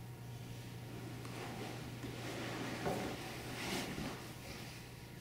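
Clothing rustles and a couch creaks as a young woman moves about.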